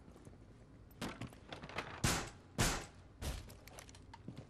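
Wooden boards bang and thud as a barricade is put up.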